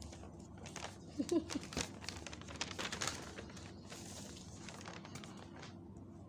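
Paper rustles and crackles as sheets are handled close by.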